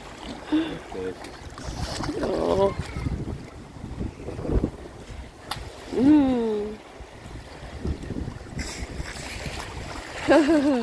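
Water splashes and laps as sea lions swim.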